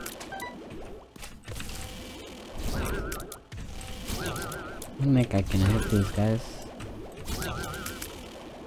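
Game sound effects of shots and squelching hits play in quick bursts.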